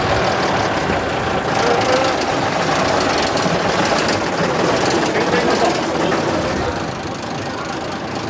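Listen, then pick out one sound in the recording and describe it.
A heavy truck engine idles with a steady low rumble.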